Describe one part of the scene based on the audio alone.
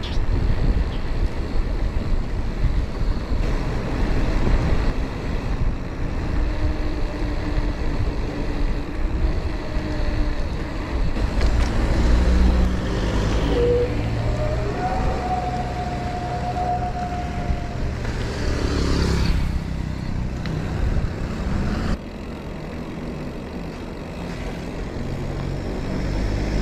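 Wind rumbles and buffets steadily outdoors as a bicycle rolls along.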